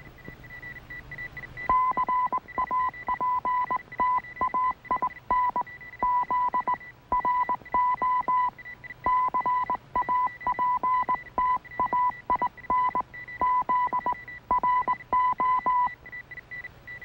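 An electronic signal beeps in quick, uneven pulses.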